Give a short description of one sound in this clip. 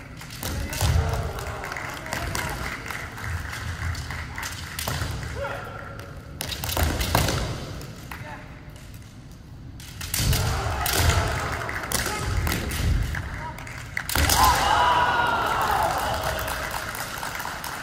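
Bare feet stamp on a wooden floor.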